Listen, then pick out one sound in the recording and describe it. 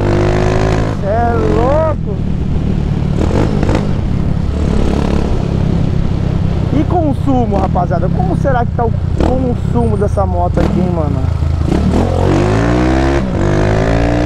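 A motorcycle engine revs up and down as it changes gear.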